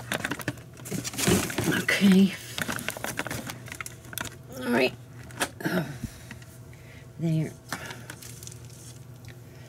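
A plastic bin liner rustles as a hand pushes rubbish down.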